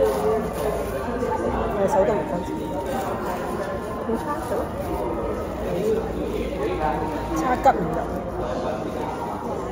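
A paper napkin rustles and crinkles.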